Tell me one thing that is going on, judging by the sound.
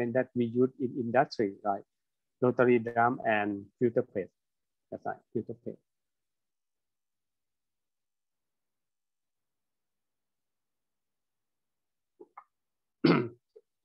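A man speaks calmly, as if lecturing, heard through an online call.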